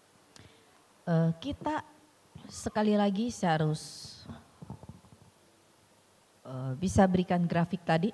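A middle-aged woman speaks calmly through a microphone.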